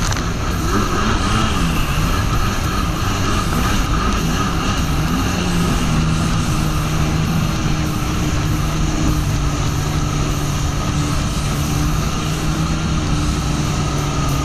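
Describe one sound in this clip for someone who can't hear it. A jet ski engine hums steadily, its pitch rising and settling.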